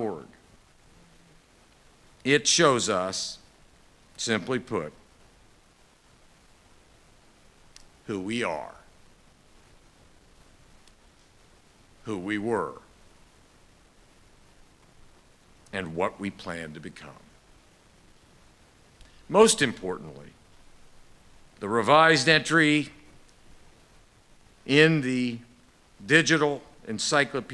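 A middle-aged man speaks into a microphone in short, measured phrases with pauses.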